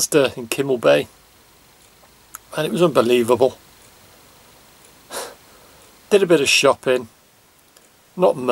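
A middle-aged man talks calmly and close by, in short bursts with pauses.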